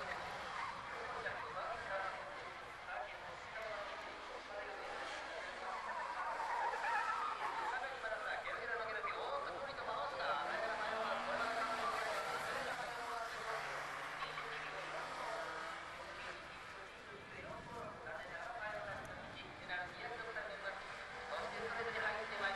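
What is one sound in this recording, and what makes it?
A small car's engine revs hard as it races around a track.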